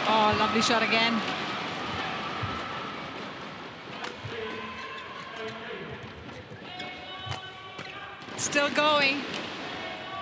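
Shoes squeak sharply on the court floor.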